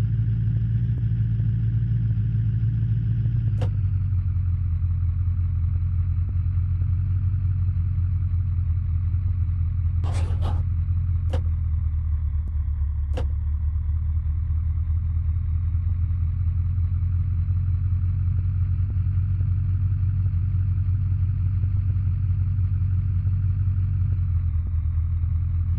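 A car engine hums steadily at low revs.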